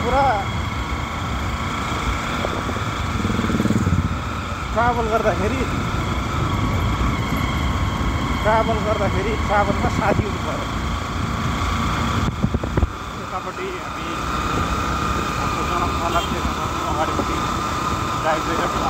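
A motorcycle engine hums while riding.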